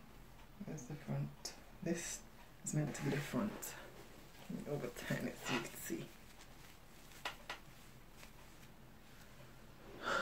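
Hair rustles as hands handle a wig.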